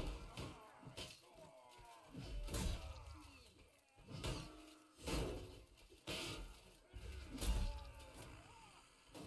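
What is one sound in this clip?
Swords clash and strike armour with sharp metallic hits.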